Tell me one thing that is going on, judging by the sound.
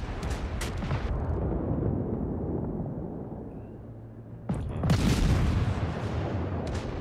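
Shells explode with deep rumbling blasts.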